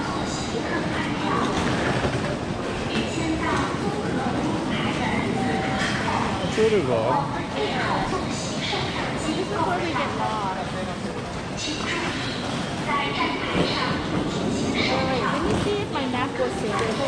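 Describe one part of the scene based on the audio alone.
Many people's voices murmur and chatter throughout a large echoing hall.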